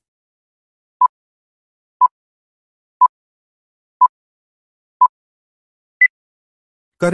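A timer beeps once a second as it counts down, ending on a higher beep.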